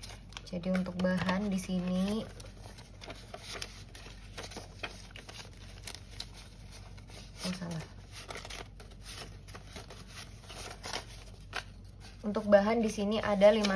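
Paper banknotes rustle and crinkle as they are handled up close.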